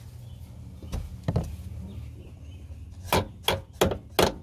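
Something knocks sharply on a metal door latch.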